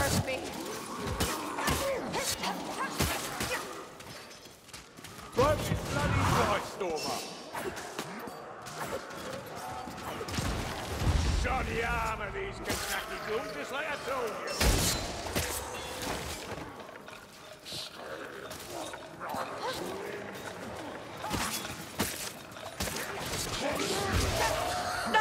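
Weapons strike and slash in rapid, clashing blows.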